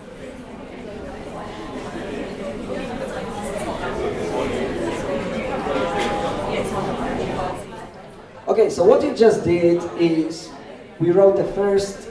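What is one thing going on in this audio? A young man speaks calmly into a microphone in a reverberant room.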